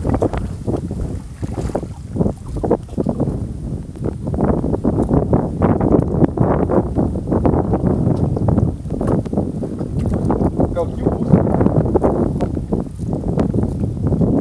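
Water drips and splashes from a wet fishing net.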